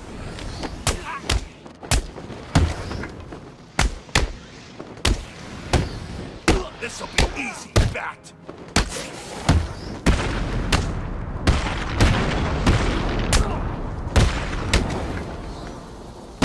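Heavy punches and kicks thud in quick succession.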